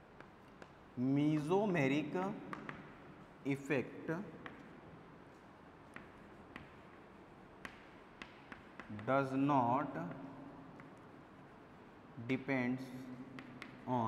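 A man speaks calmly in short phrases.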